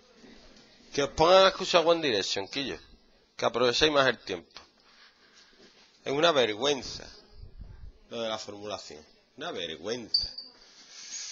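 A man explains something in a calm, lecturing voice close by.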